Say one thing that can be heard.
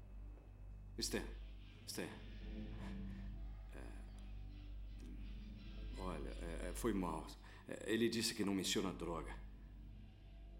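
A man whispers urgently close by.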